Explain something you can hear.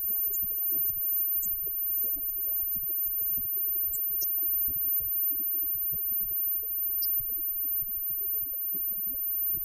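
Electric guitars play through amplifiers.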